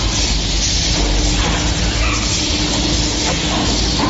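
A press clanks as it opens.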